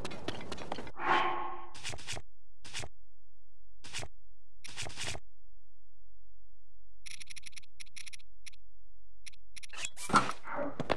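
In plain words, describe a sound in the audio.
Menu clicks and soft chimes sound as items are browsed.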